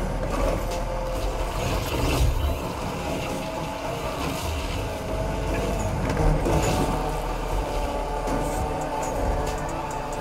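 Tyres screech while sliding through turns.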